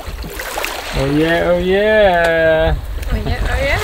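A woman sings out in long, drawn-out notes close by.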